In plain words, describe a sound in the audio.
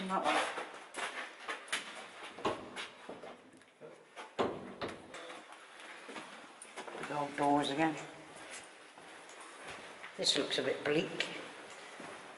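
An elderly man speaks quietly nearby.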